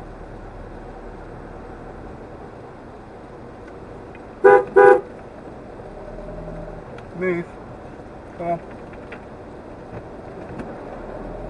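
Tyres roll slowly on the road.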